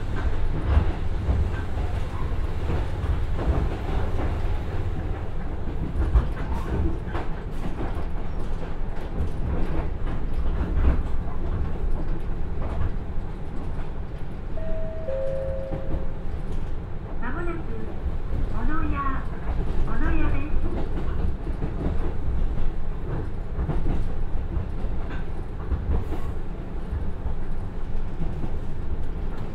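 Train wheels clatter over the rail joints.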